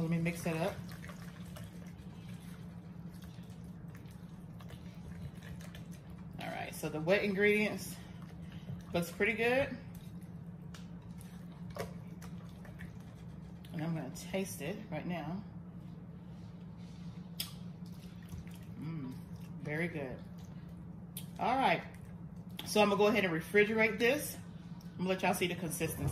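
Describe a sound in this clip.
A spatula stirs and squelches through thick, creamy potato salad in a glass bowl.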